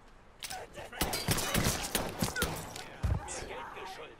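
Pistol shots crack sharply.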